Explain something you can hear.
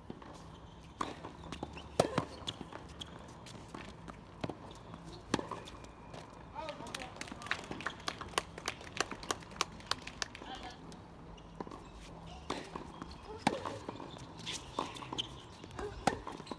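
Tennis balls are struck with rackets in a rally, with sharp pops.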